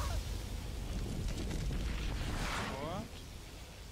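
A rocket launches with a roaring rush.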